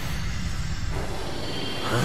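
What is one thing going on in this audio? A burst of flame whooshes past.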